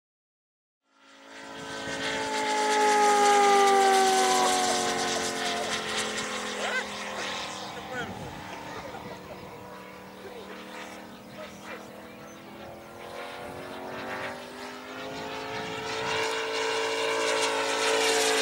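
A propeller plane's engine drones loudly overhead, its pitch sliding as it passes and fades.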